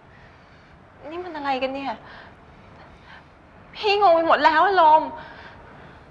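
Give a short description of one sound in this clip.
A young woman speaks softly and closely.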